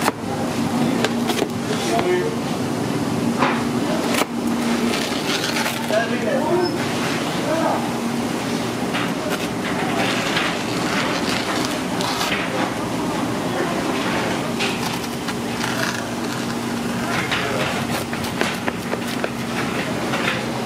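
A pizza cutter rolls and crunches through a crust.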